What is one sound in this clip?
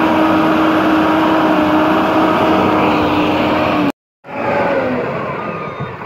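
A diesel motor grader's engine runs.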